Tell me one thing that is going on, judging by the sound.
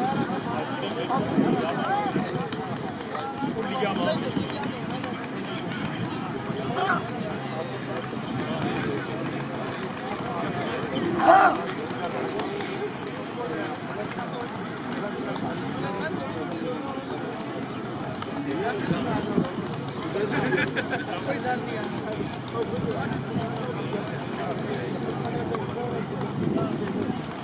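A crowd chatters and calls out outdoors.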